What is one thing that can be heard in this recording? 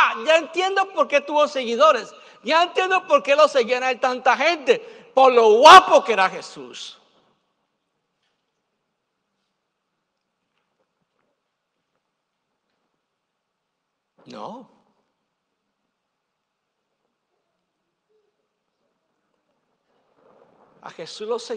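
A middle-aged man preaches with animation through a microphone.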